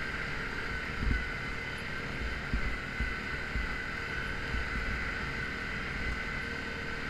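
A vehicle bumps and thuds over a rough snowy trail.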